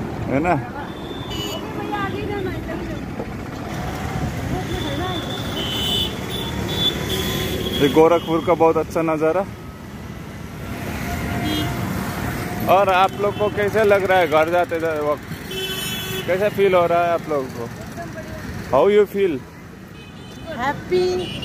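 Traffic passes by steadily on a nearby road.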